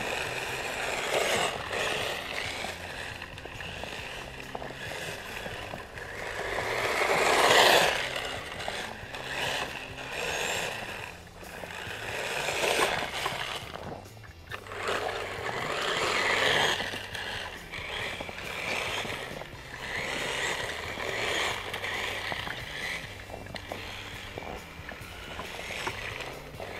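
A small electric motor of a toy snowmobile whirs, swelling and fading as the toy drives over snow.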